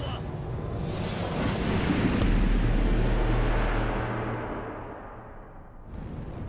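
A deep rumbling boom swells and slowly fades.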